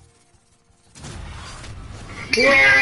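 A video game plays a whooshing reveal sound.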